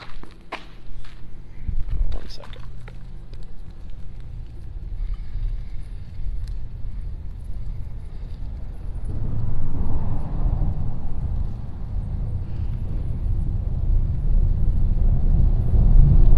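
Wind blows across the microphone outdoors, growing stronger.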